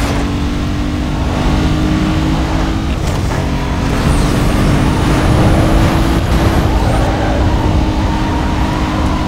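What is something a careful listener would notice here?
Tyres rumble and hiss over a rough road.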